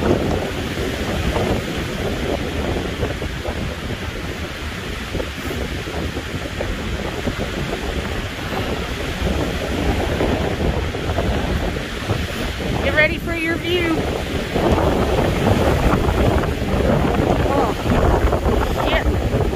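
Wind blows hard through pine trees outdoors, rumbling steadily.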